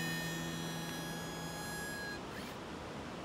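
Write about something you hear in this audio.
A harmonica plays a long, held note.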